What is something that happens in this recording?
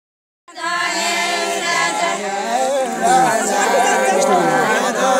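A group of women sings together close by, outdoors.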